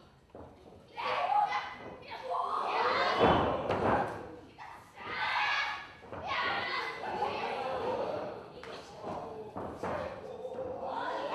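Young women shout with effort.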